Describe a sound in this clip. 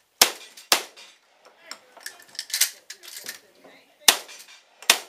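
Gunshots crack sharply outdoors, one after another.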